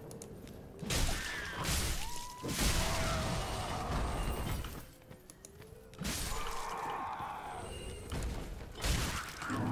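Swords clash and thud in a fight.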